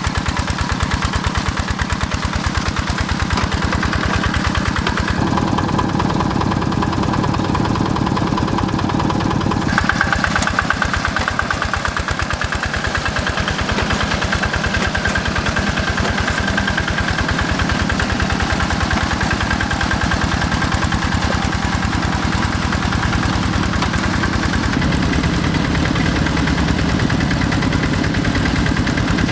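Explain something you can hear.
A small tractor engine chugs loudly and steadily.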